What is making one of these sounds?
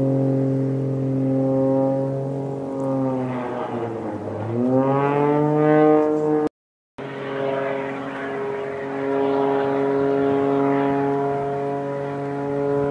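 An aerobatic plane's engine drones overhead.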